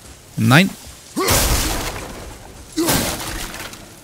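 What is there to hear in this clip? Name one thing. A wooden crate smashes apart with a loud crack.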